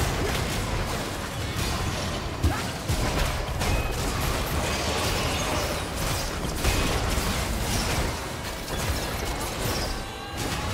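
Magic blasts and weapon hits crackle and thud in a fast, busy fight.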